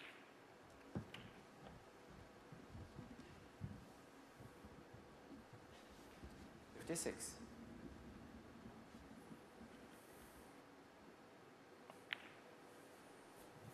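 Snooker balls clack together on the table.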